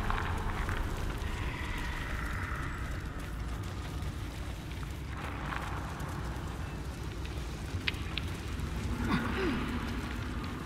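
A low, steady rumble fills a cavern.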